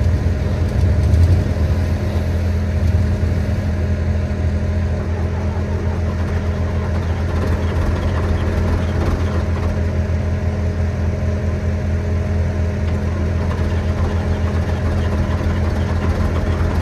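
A diesel engine idles with a steady, low rumble close by.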